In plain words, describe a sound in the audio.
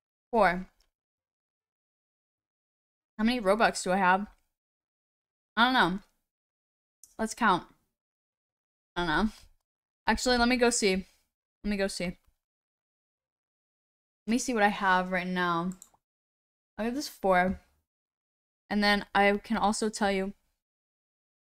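A young woman talks with animation into a close microphone, in short bursts.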